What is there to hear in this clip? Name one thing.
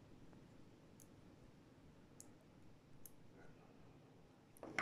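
Small magnetic balls click softly against each other as fingers rearrange them.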